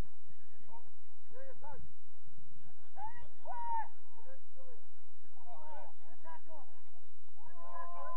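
Young players shout and call to each other at a distance, outdoors in the open.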